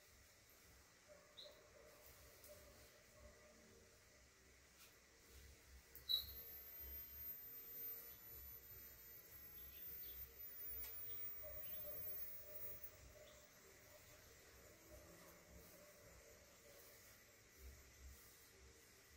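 Silk cloth rustles softly as it is folded.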